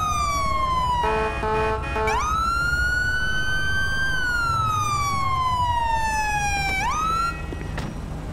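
A police siren wails up and down nearby.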